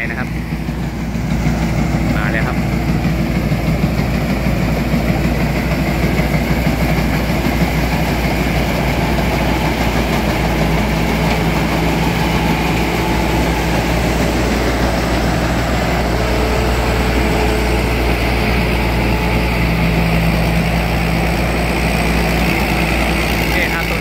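A combine harvester's diesel engine rumbles steadily close by.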